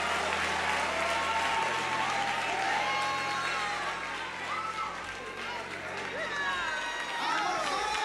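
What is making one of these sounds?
A large crowd sings and cheers in a big echoing hall.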